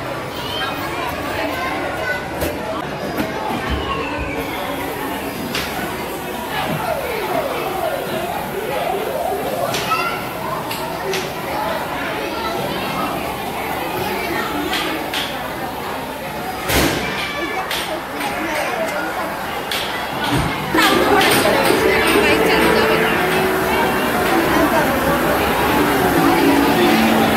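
Arcade racing games play bright electronic music.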